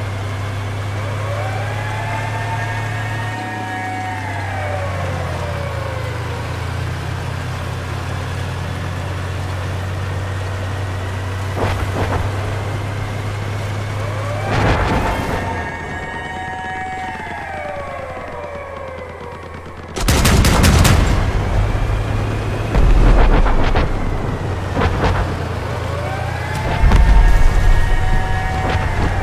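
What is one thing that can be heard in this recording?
A heavy vehicle engine rumbles steadily.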